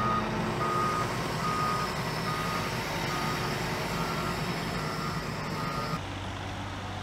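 A reversing alarm beeps at a steady pace.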